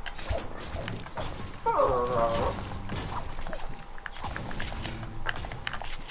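Pickaxe strikes thud against walls again and again.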